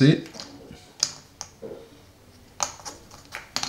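Small plastic game pieces click against each other.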